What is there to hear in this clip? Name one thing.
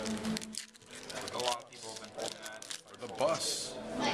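A foil wrapper is torn open.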